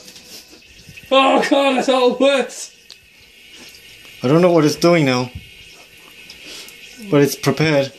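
A bidet nozzle sprays water into a toilet bowl.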